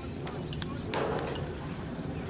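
A cricket bat strikes a ball with a sharp knock.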